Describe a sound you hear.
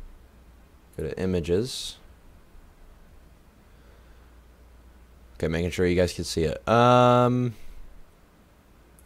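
A young man speaks with animation into a close microphone.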